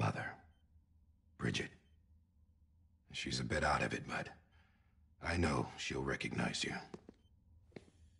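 A man speaks quietly and calmly up close.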